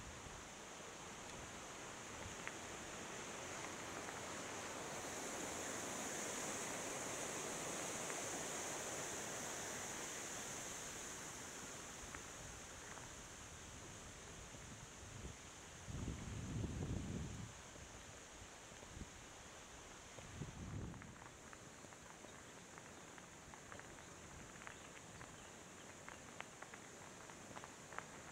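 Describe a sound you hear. Wind rushes past a helmet microphone.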